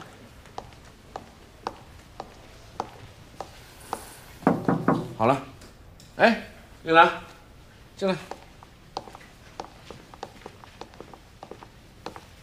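Footsteps click steadily on a hard floor.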